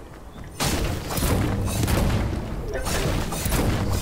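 A pickaxe strikes a tree trunk with sharp thwacks.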